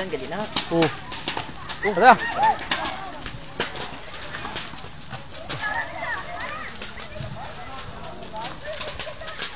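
A large fire crackles and pops.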